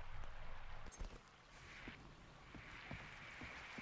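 Soft footsteps tread on wooden boards.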